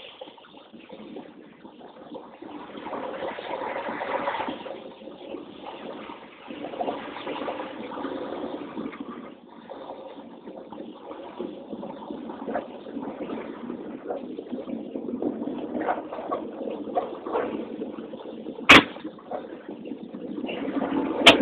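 Wind rushes past a moving vehicle.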